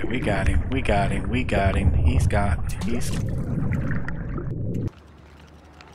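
Water rumbles and churns underwater as a fish thrashes.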